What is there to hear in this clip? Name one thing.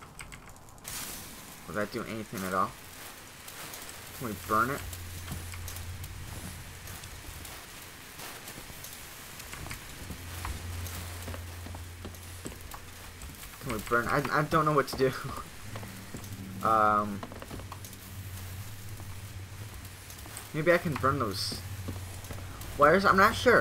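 A lit flare hisses and crackles steadily.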